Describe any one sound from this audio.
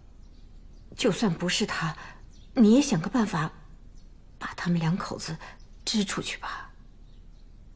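An older woman speaks firmly and calmly.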